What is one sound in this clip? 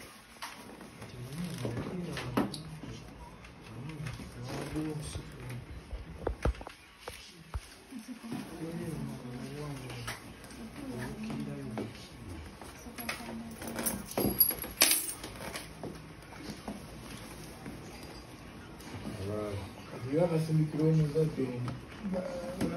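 Men talk nearby in casual, animated voices.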